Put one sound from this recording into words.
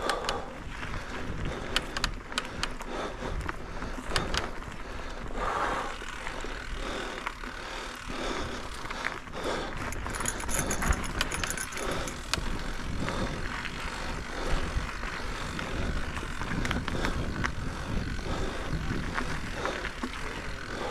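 A bicycle rattles and clicks over bumps.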